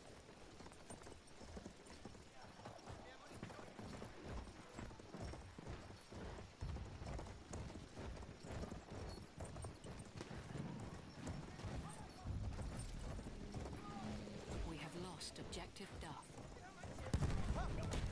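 A horse gallops over dirt.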